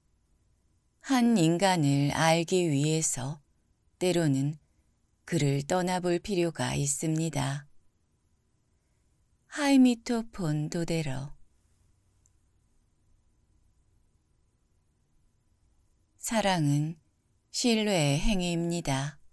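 A young man reads out calmly and closely into a microphone, with pauses between phrases.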